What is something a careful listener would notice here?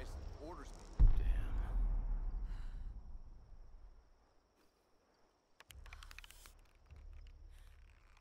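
A young man speaks quietly into a microphone.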